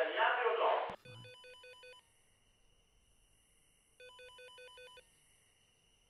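Electronic keypad tones beep in quick bursts.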